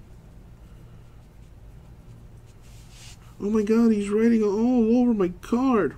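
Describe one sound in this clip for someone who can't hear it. A marker pen squeaks and scratches across a card.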